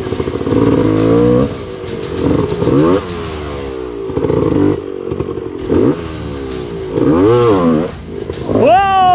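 A dirt bike engine revs in sharp bursts and idles between them.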